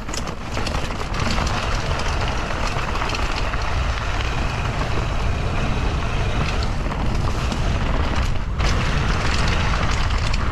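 Wind rushes past loudly as the bike picks up speed.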